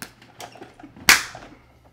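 Two men slap hands in a loud high five.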